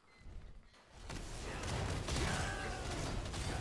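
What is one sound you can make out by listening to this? Fiery spells whoosh and crackle in a game.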